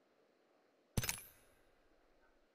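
A short game menu chime sounds.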